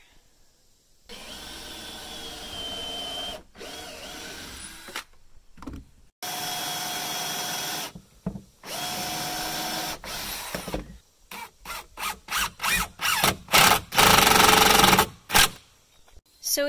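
A cordless drill whirs in steady bursts, speeding up and slowing down.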